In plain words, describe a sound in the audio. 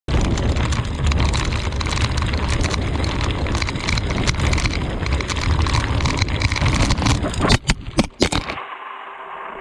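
Bicycle tyres crunch loudly over loose gravel.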